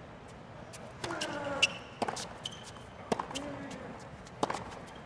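A racket strikes a tennis ball with sharp pops, back and forth.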